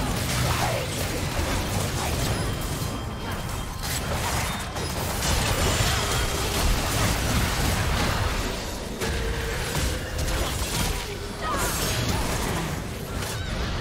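Spells and weapon strikes crackle, whoosh and boom in a fast, busy game battle.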